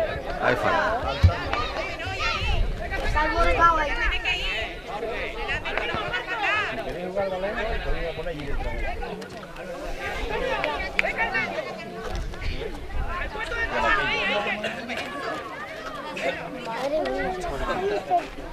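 Young boys shout and call out to each other across an open field outdoors.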